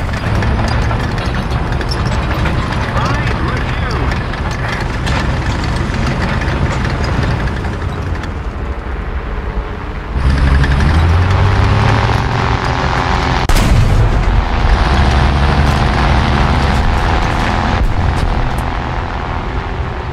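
Tank tracks clatter over sand.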